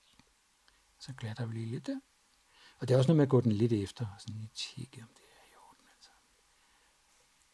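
Fingers press and smooth soft wet clay.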